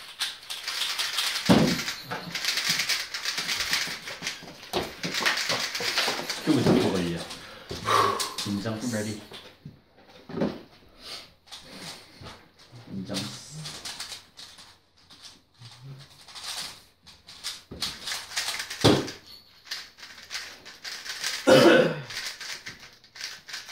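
Plastic puzzle cubes click and rattle as they are turned quickly.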